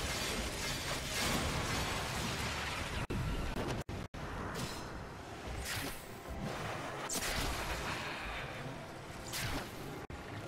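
Sharp energy blasts whoosh and crackle in bursts.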